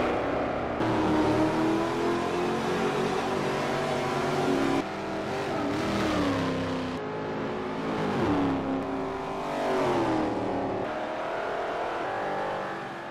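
A race car engine roars loudly, its pitch rising and falling as the car shifts gears.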